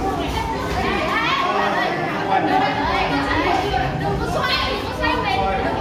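Children and adults chatter nearby in an echoing hall.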